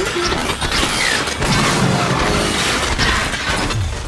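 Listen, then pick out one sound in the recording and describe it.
A heavy wrench swings and clangs against a metal cart.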